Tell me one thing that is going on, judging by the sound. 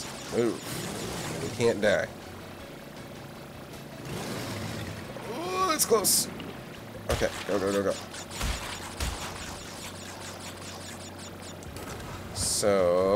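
Water splashes and rushes under a speeding jet ski.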